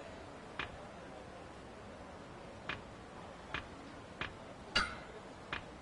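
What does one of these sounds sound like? Short menu clicks tick as a selection moves.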